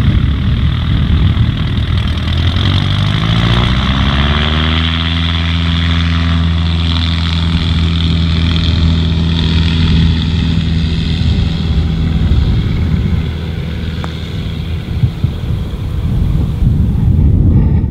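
A glider's wheel rumbles along a runway as the glider picks up speed.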